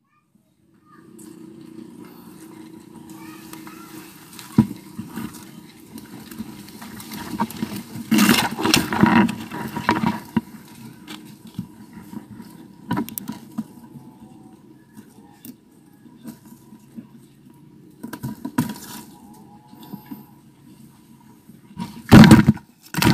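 Leaves rustle and twigs crackle as branches are pulled.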